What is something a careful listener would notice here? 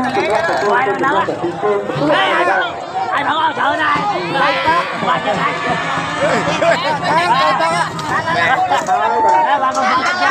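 Several men shout and cheer loudly close by, many at once.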